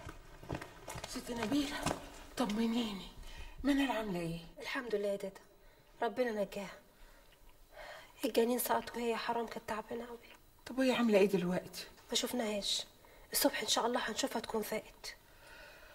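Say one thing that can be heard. A young woman speaks tearfully close by.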